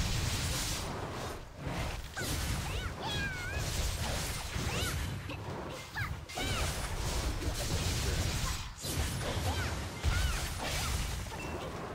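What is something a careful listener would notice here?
Blades slash and strike in quick, rapid bursts.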